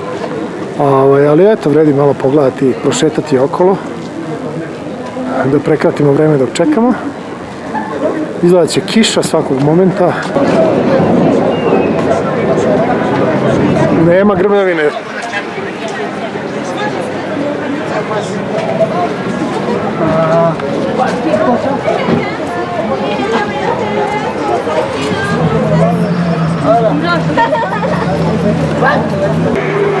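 Men and women chatter nearby in an outdoor crowd.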